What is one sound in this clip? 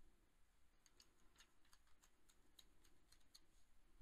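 Pages snap softly onto plastic binder rings.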